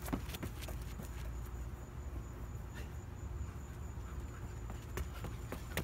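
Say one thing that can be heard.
Running footsteps pound on concrete outdoors.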